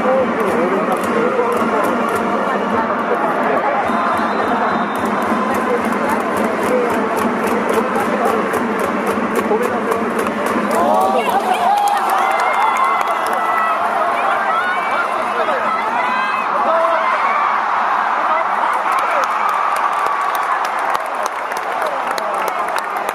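A large stadium crowd chants and cheers loudly.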